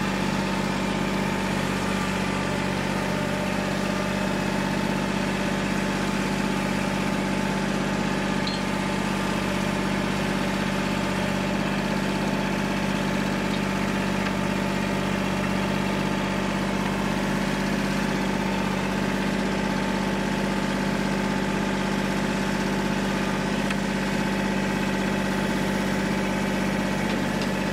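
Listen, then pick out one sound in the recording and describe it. A tractor engine runs steadily at a distance.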